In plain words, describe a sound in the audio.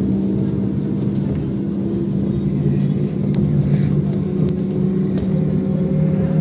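An engine hums steadily from inside a moving vehicle.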